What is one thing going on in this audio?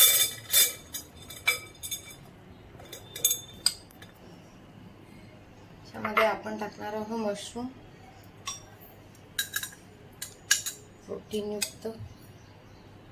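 A spoon clinks against a glass bowl.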